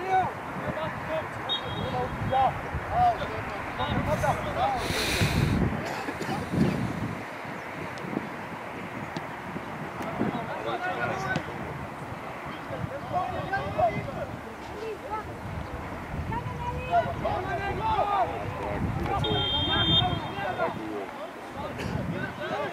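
Teenage boys shout to each other from a distance across an open outdoor pitch.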